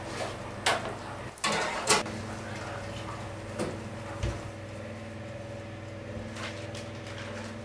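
Pots and dishes clatter and knock.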